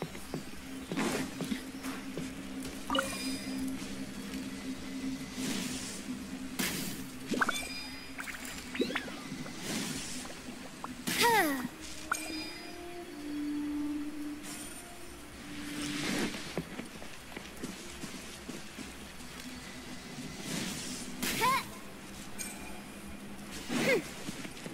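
Bow shots and magic bursts crackle and whoosh again and again.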